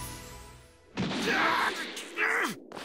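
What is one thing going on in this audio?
A huge energy blast explodes with a roar.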